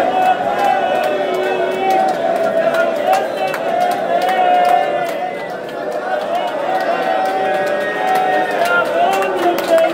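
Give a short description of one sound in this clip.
A large crowd of men sings together loudly in an echoing hall.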